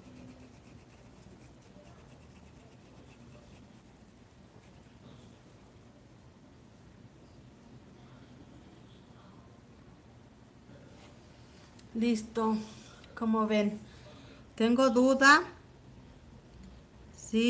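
A paintbrush brushes softly on cloth.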